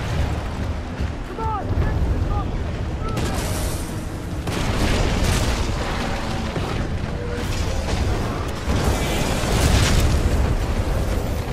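A large gun fires in rapid bursts.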